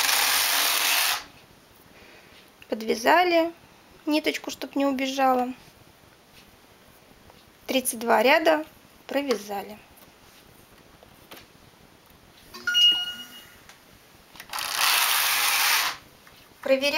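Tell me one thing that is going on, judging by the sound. A knitting machine carriage slides across the needle bed with a loud rushing rattle.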